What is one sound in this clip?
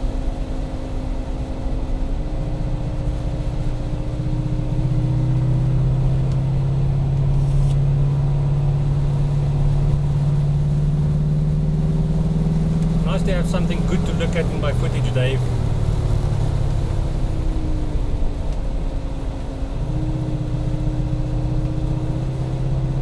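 A car engine hums steadily, its pitch slowly rising and falling.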